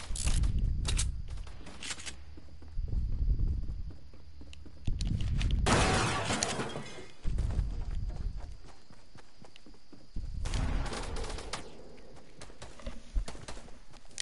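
Footsteps thud quickly in bursts.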